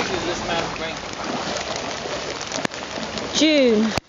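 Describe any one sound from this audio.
Boots splash through shallow floodwater.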